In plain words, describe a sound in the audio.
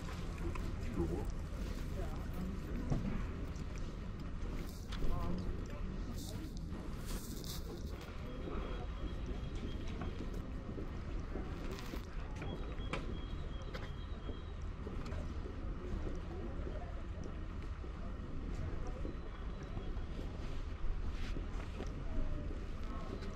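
Footsteps tap steadily on paving stones outdoors.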